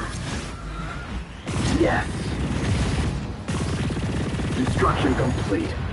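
Laser guns fire in bursts.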